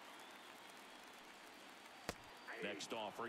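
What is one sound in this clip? A baseball smacks into a catcher's mitt.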